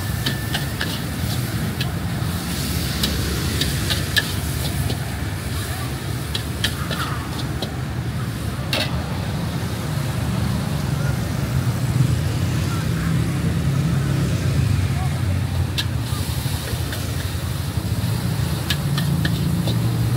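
A gas burner roars steadily under a wok.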